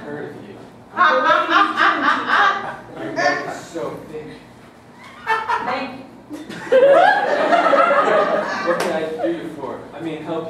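An audience laughs loudly in an echoing room.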